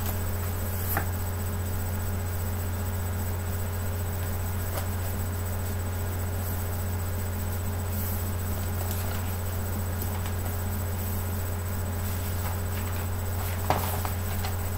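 Hands knock and rub against a tablet close by.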